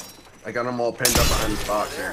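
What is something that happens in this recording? Gunshots fire in a quick burst.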